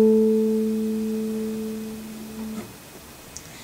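A guitar chord rings out and slowly fades.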